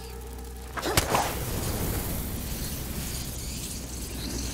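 Flames crackle and roar steadily.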